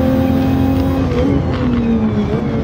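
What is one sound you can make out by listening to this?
A racing car engine drops in pitch as the driver brakes and shifts down.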